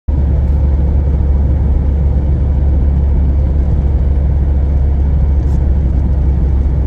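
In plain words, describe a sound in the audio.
Tyres roll on asphalt with a low rumble.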